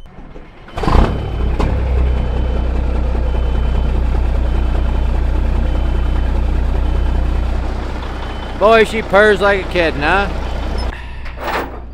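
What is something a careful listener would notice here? A diesel truck engine idles with a deep steady rumble.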